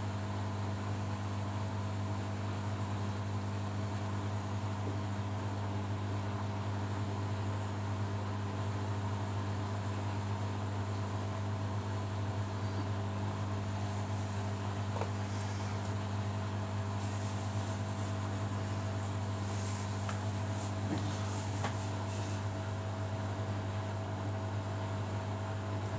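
A front-loading washing machine's motor hums as the drum turns during a wash cycle.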